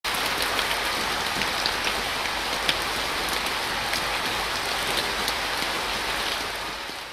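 Rain falls steadily with a soft hiss and scattered pattering drops.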